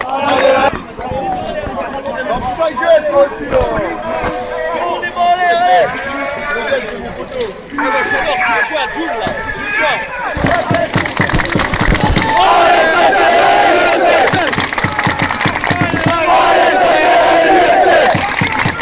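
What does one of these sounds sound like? A crowd of fans sings and chants loudly close by.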